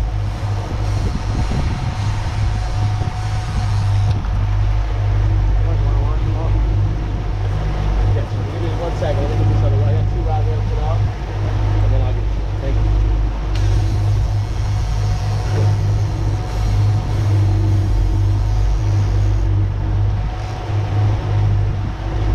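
Water rushes and churns.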